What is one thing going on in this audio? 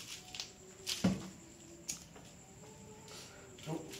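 A wooden cabinet door with a glass pane bumps and knocks.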